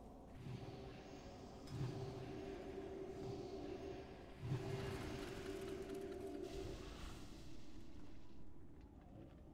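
Magic spells whoosh and crackle in a battle.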